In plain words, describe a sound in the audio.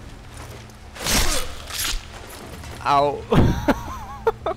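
Heavy blades slash and thud into flesh.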